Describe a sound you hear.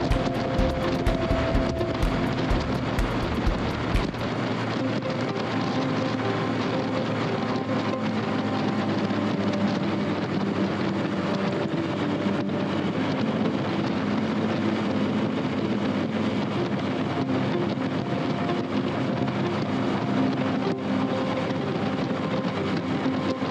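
Wind rushes and buffets past the rider.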